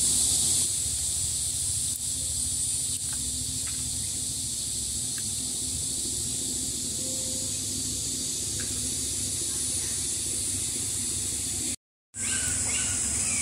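Small glass vials click as they are handled.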